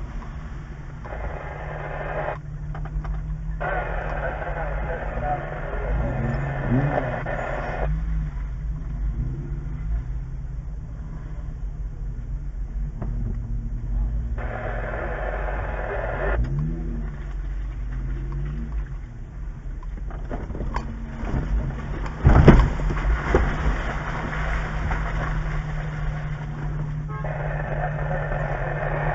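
A vehicle engine rumbles steadily close by.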